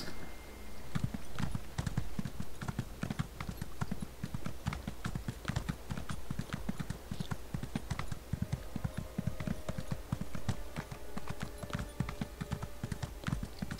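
A horse's hooves thud in a quick, steady rhythm on snow.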